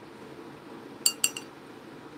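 A paintbrush clinks twice against a water jar.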